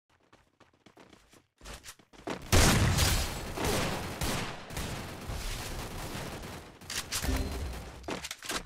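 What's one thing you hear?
Footsteps run across sandy ground.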